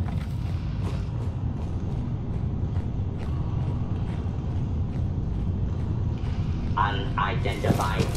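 Footsteps crunch over a gritty floor.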